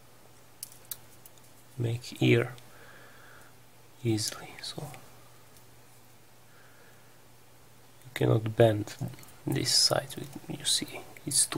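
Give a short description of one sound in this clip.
Stiff paper rustles softly between fingers.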